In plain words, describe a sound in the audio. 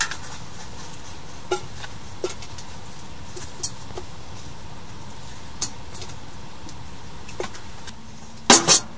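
Water splashes softly as meat is rinsed by hand in a pot.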